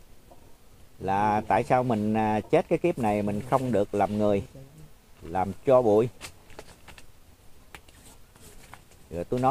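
An elderly man speaks calmly and slowly into a close microphone, in bursts with pauses.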